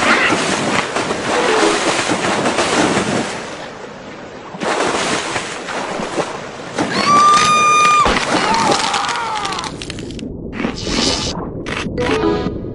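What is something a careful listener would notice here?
Water splashes and churns loudly.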